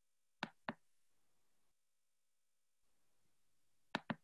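A middle-aged woman speaks softly and briefly into a microphone.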